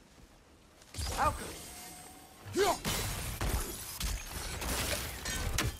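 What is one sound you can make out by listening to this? A magical orb crackles and hums loudly.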